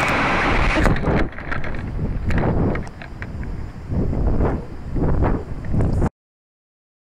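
Wind rushes and buffets past a climbing rocket.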